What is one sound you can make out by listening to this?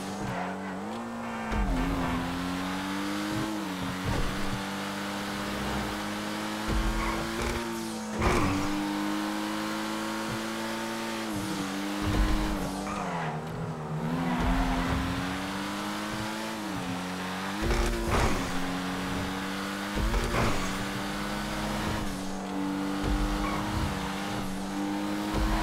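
A sports car engine roars steadily, its pitch rising and dipping as the car speeds up and slows down.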